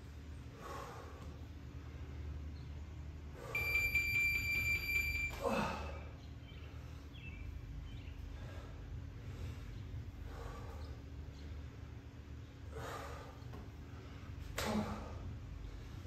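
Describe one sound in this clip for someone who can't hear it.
A woman exhales sharply with each lift.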